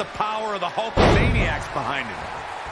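A heavy body slams onto a wrestling ring mat with a loud thud.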